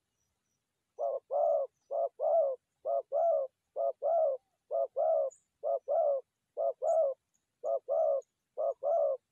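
A dove coos in short, repeated calls close by.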